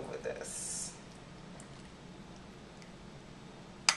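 Liquid pours into a glass dish.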